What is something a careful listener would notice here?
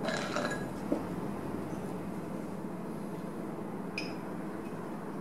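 Ice cubes clink against each other.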